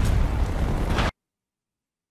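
Loud gunfire and noise from a video game play.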